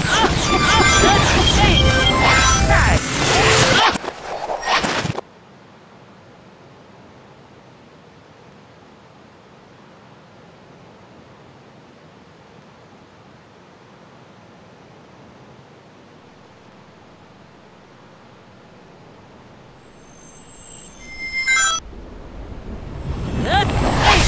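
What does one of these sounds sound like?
Video game sound effects whoosh and chime loudly.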